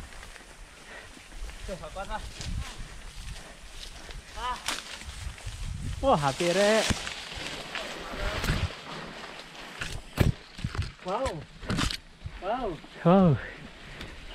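A mountain bike rattles and clunks over bumps.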